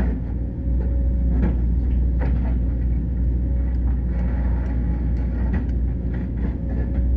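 An excavator bucket scrapes and knocks against stony ground.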